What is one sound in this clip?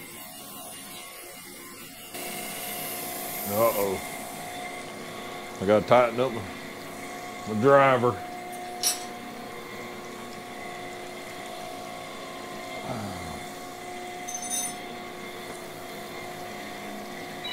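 Coolant liquid splashes and trickles steadily.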